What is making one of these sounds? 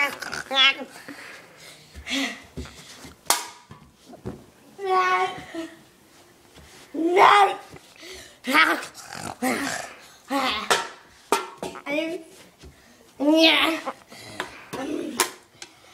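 A young child shouts and squeals excitedly close by.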